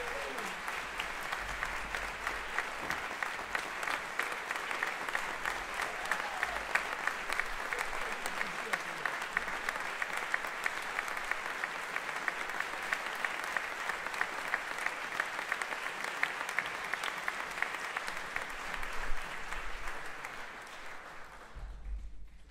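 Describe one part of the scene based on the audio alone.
Loud applause fills a large hall.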